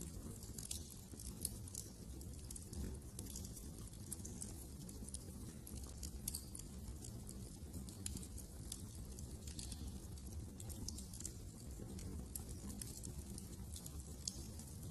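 A fire crackles and pops steadily close by.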